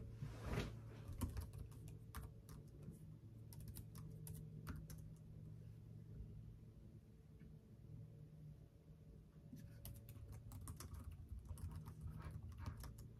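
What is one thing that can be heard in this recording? Keys clatter as someone types quickly on a keyboard.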